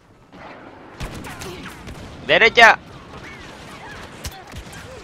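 Blaster rifles fire in quick bursts.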